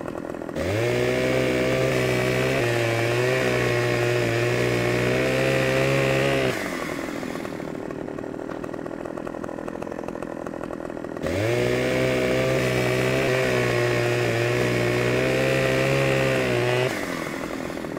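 A chainsaw revs hard and cuts into wood.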